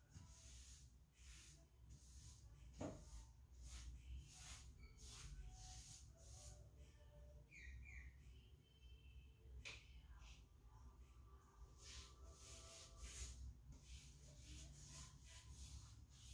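A brush scrubs a hard surface in quick, rhythmic strokes.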